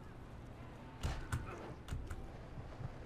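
Footsteps thump quickly.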